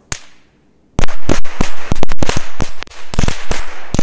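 A firecracker bangs and crackles in rapid loud bursts outdoors.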